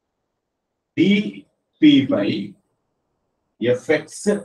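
A man speaks in short phrases, explaining calmly nearby.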